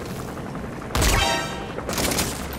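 A rifle fires a single sharp shot.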